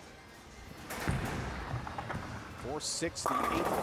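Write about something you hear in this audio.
A bowling ball rolls down a lane with a low rumble.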